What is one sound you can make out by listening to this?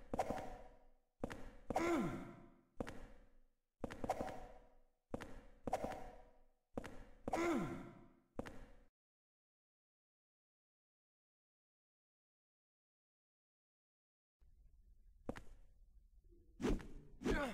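Heavy metal blows strike again and again, each ringing out briefly.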